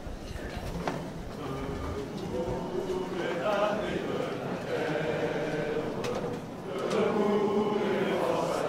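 A crowd sings together in unison in a large echoing hall.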